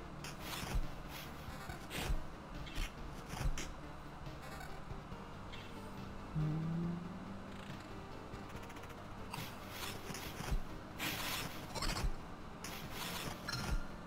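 Game sword slashes and hits strike repeatedly.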